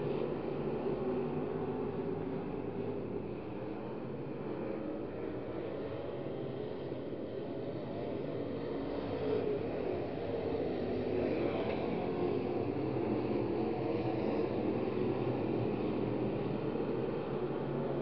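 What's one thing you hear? Race car engines roar as cars speed around a dirt track.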